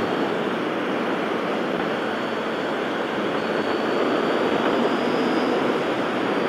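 A motorcycle engine hums steadily as it cruises.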